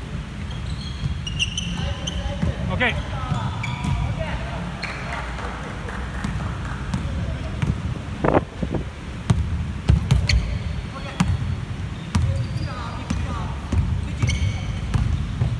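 A basketball bounces with dull thuds in a large echoing hall.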